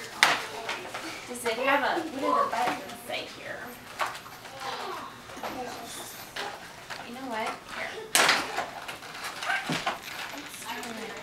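A young girl talks excitedly.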